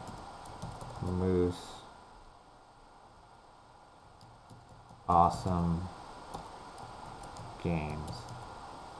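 A young man speaks calmly and close to a microphone, in short phrases.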